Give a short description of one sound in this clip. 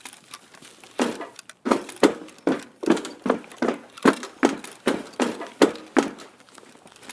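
Heavy footsteps thud across a hollow metal floor.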